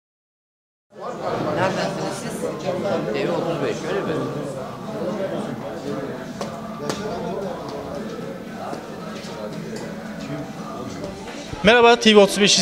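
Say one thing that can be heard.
Several men chat quietly in a room.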